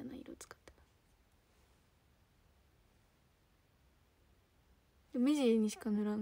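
A young woman speaks close to a microphone in a high, sing-song voice.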